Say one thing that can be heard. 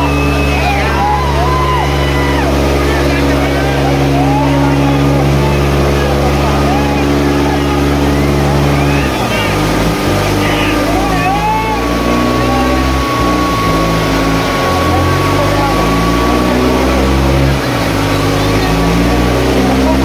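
A crowd chatters and cheers outdoors.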